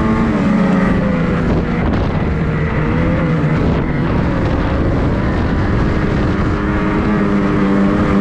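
A snowmobile engine roars steadily up close, its pitch rising and falling.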